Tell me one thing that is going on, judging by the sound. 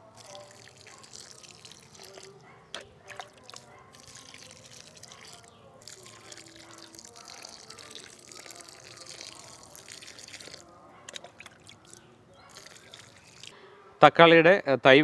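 Water pours and splashes softly onto soil.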